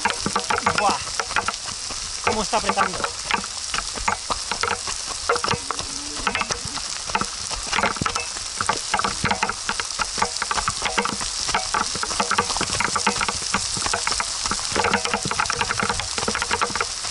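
Footsteps crunch on loose gravel at a running pace.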